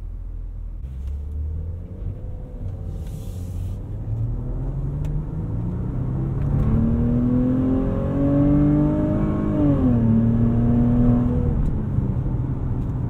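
A car engine revs up, rising in pitch as the car speeds up, then eases off.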